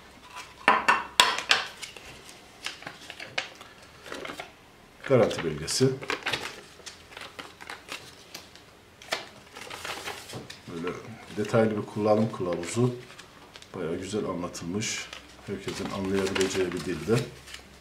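Paper rustles and crinkles as a folded leaflet is opened.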